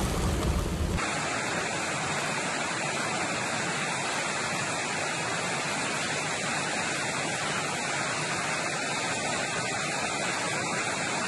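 Floodwater roars as it pours down a rocky slope.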